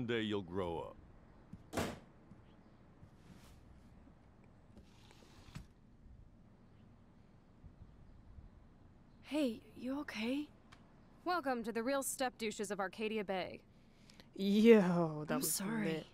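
A young woman speaks wearily and mockingly.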